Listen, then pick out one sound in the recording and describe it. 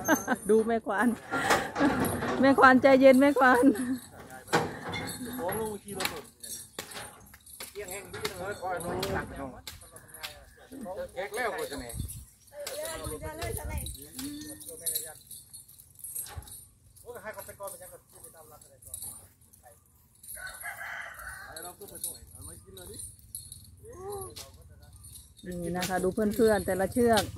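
Men talk and call out to each other nearby, outdoors.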